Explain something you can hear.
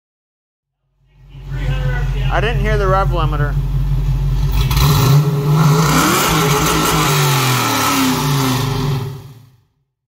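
A car engine idles with a deep, rumbling exhaust and revs up.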